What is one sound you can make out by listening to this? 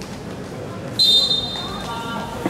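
A referee blows a sharp whistle blast.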